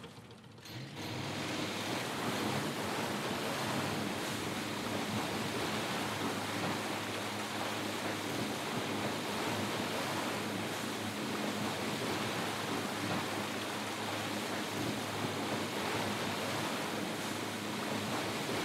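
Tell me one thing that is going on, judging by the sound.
A motorboat engine drones steadily at speed.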